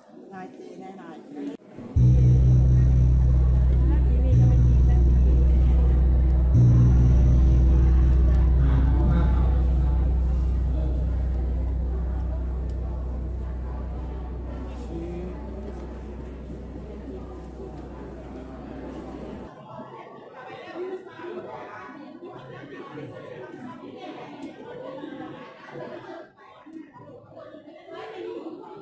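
A crowd of men and women murmurs and chatters in a large hall.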